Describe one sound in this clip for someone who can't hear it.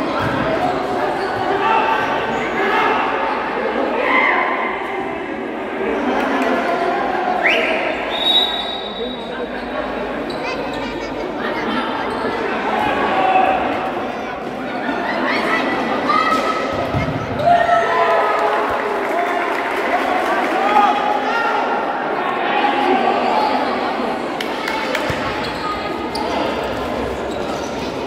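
A crowd of young men chatters and shouts.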